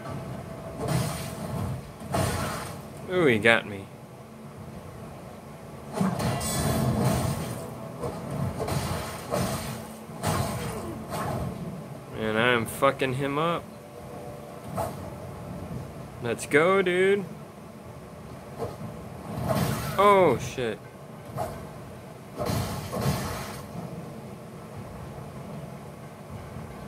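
Sword slashes and impacts from a video game fight play through a television speaker.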